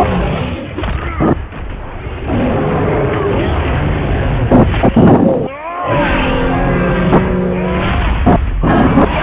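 A huge creature growls and roars.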